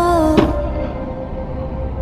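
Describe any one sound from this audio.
A skateboard's wheels roll over pavement.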